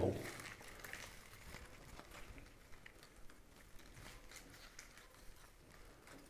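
Plant leaves rustle softly as they are handled.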